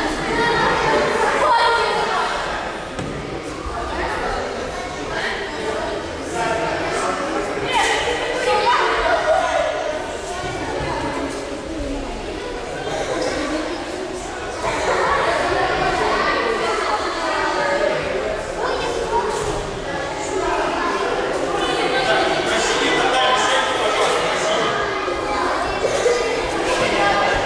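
A man speaks loudly to a group in an echoing hall.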